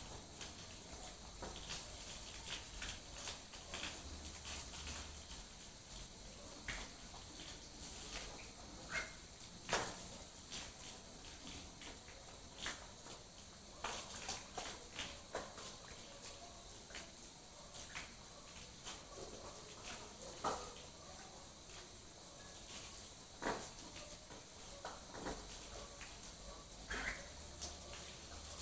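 Water from a hose splashes onto a dog's wet fur and drips onto the floor.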